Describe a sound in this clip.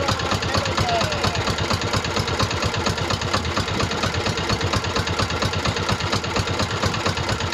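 A boat engine chugs steadily and loudly close by.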